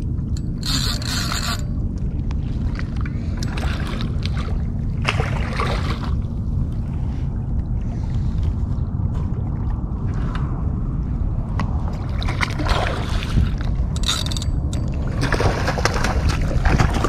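A fishing reel whirs and clicks as its handle is cranked.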